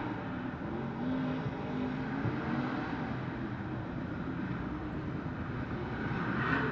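Racing cars roar around a dirt track.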